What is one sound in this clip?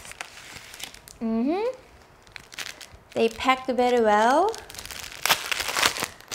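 Glossy paper pages rustle and crinkle.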